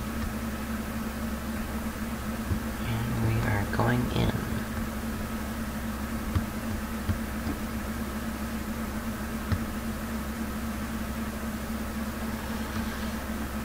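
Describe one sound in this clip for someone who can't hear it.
A plane's engine drones steadily.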